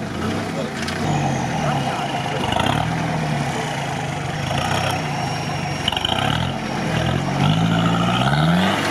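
An off-road engine revs hard, rising and falling.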